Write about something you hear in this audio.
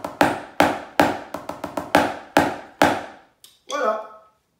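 Drumsticks tap quickly on a rubber practice pad.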